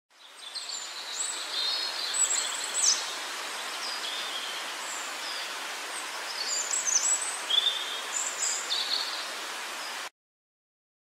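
Small birds chirp and twitter.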